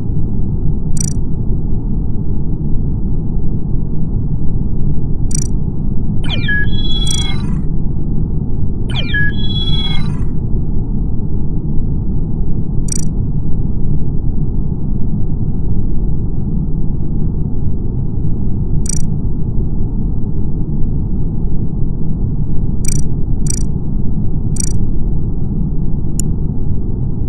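Short soft clicks sound as menu options are picked.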